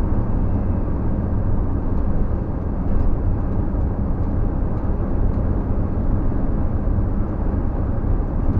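A car engine hums steadily as tyres roll over the road from inside the car.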